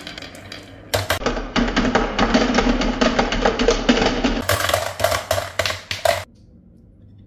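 Marbles drop and clatter into a plastic toy.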